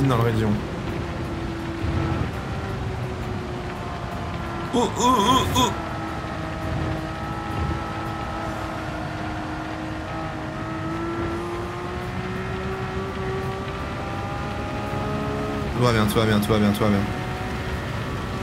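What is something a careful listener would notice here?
A racing car engine drones steadily, rising and falling in pitch.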